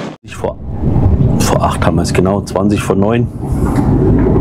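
A man talks nearby inside a vehicle.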